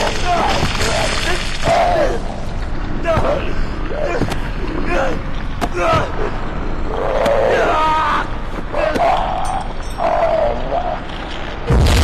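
A large creature growls and roars.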